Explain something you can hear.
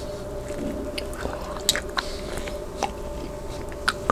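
A man bites and chews crunchy food.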